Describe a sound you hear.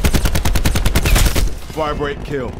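An automatic rifle fires a rapid, loud burst.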